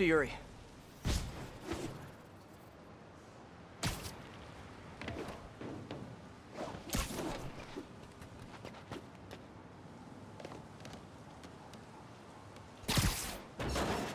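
Quick whooshes and snaps sound as a figure swings and climbs.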